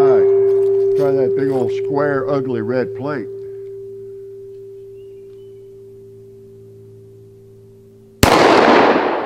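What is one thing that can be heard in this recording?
A steel gong rings and wobbles after being hit, slowly fading.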